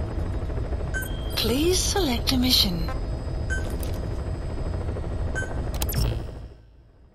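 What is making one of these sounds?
Short electronic beeps sound as menu items are selected.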